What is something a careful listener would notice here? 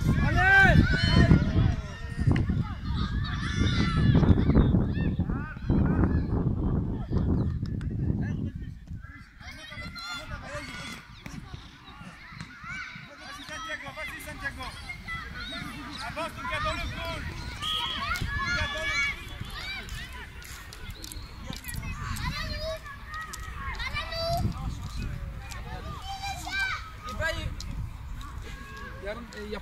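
Children shout and call out while playing outdoors.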